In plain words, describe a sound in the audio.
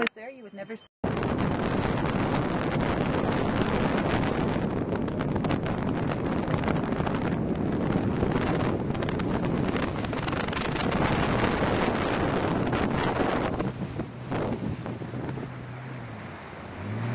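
River water rushes and splashes past a boat.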